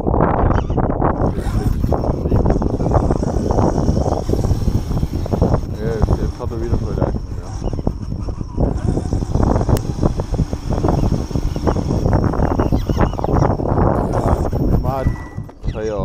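A small motor whines as a remote-control car drives fast.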